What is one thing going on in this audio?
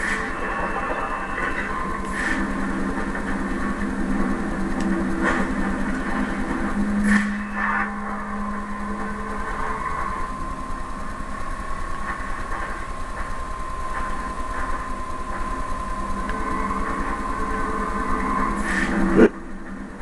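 Video game music and sound effects play from a television speaker.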